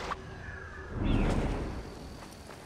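Someone lands on the ground with a heavy thud.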